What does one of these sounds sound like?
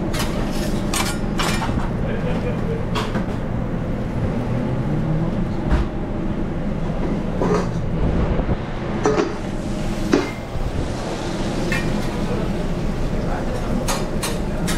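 Metal spatulas scrape and clatter on a hot griddle.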